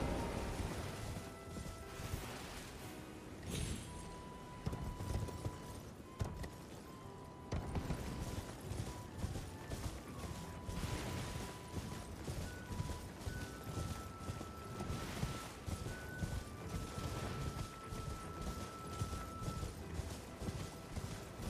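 A horse's hooves gallop steadily over ground.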